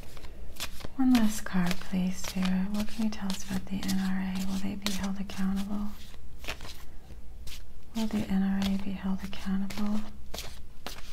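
A middle-aged woman hums a low steady tone close to a microphone.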